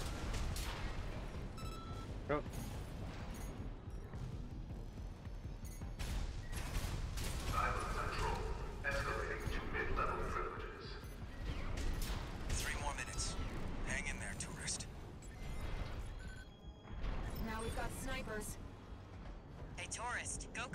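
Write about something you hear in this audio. A mech's thrusters roar steadily.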